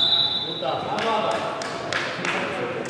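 A futsal ball thumps off players' feet in an echoing hall.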